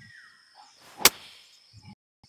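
A golf club strikes a ball with a sharp smack.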